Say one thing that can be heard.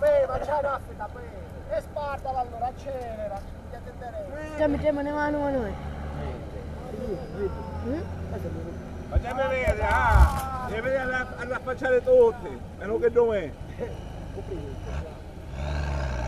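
Several men talk and call out nearby.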